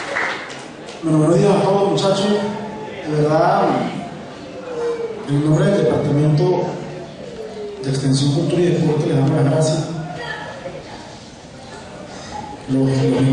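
A young man speaks through a microphone and loudspeakers in an echoing hall.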